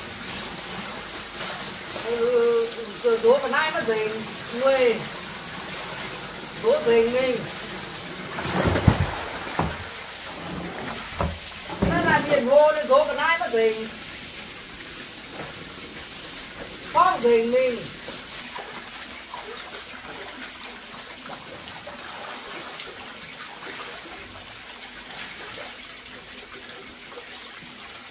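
Wet clothes splash in a basin of water.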